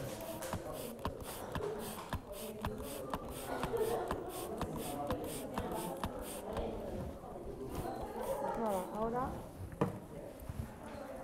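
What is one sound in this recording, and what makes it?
A modelling tool scrapes on wet clay.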